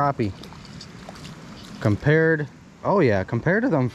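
A fish splashes into shallow water.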